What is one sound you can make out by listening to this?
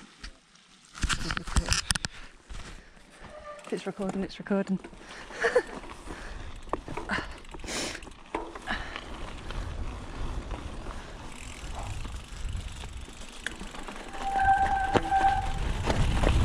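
Bicycle tyres crunch and rumble over a wet gravel track.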